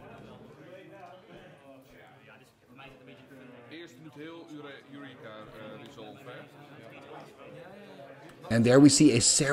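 A man talks casually and quietly close by.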